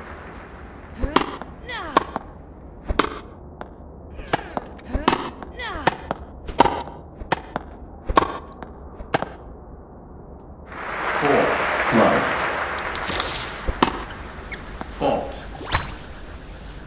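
Tennis rackets strike a ball back and forth in a game.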